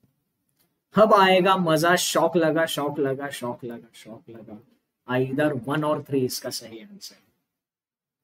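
A young man speaks with animation close to a microphone, in two short bursts.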